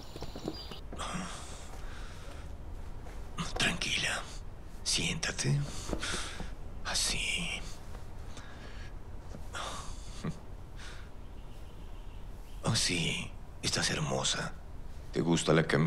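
A young woman speaks quietly and tensely close by.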